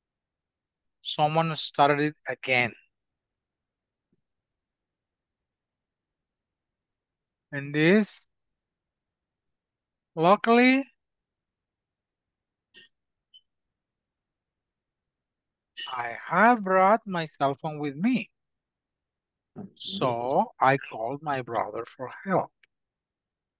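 A man speaks calmly through a microphone in short phrases with pauses.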